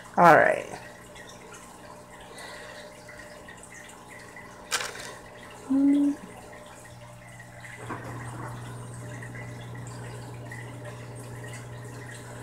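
A young woman speaks quietly close by.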